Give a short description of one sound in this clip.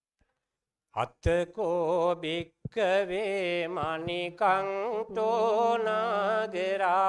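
A man chants steadily into a microphone, heard through a loudspeaker outdoors.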